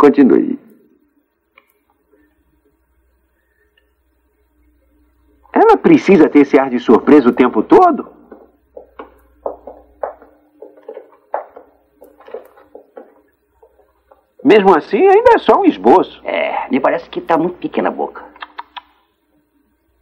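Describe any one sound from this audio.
A middle-aged man speaks with animation nearby.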